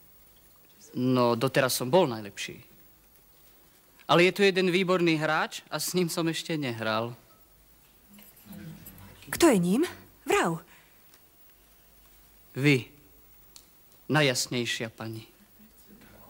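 A young man speaks clearly and with feeling, close by.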